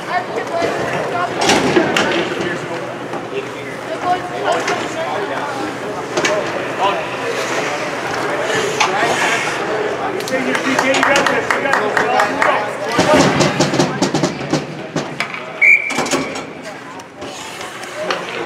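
A crowd of spectators chatters and calls out in an echoing rink.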